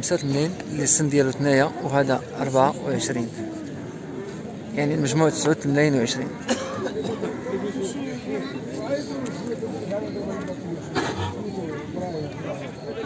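Several men talk quietly in the background.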